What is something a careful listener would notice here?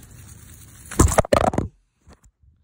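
A root vegetable tears loose from the soil.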